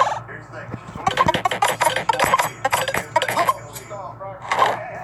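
Electronic game bleeps chirp in quick bursts.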